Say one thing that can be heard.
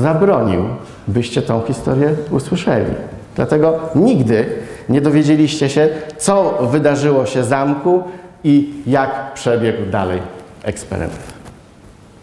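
A middle-aged man speaks with animation through a microphone in a large echoing hall.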